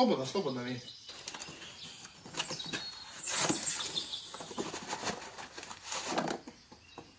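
A cardboard box rustles and tears as it is opened.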